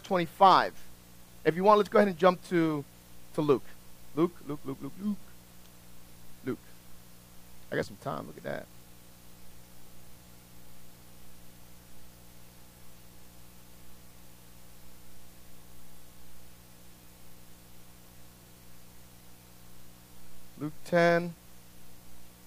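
A middle-aged man speaks calmly through a microphone, with long pauses.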